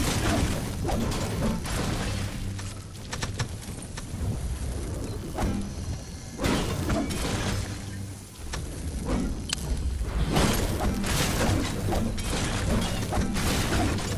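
A pickaxe smashes into wooden shelves again and again.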